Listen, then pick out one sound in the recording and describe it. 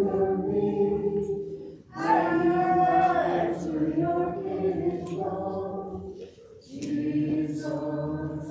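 A small choir of adult voices sings slowly in a reverberant hall.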